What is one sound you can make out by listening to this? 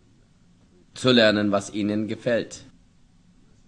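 An older man speaks slowly and calmly, close by.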